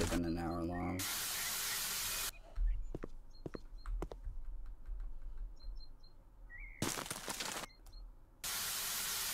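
A garden hose sprays water in short hissing bursts.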